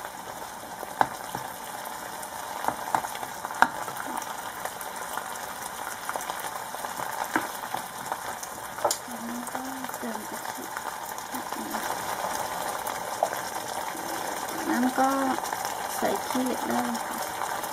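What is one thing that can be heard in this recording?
A plastic spoon scrapes and knocks against a pot.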